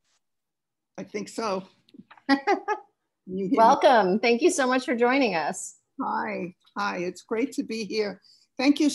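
An older woman talks and laughs cheerfully over an online call.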